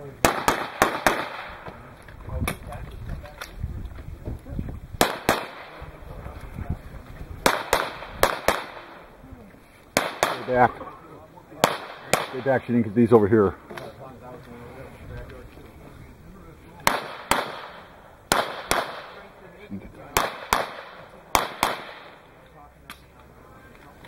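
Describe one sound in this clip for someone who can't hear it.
Pistol shots crack in quick bursts outdoors, echoing off the range.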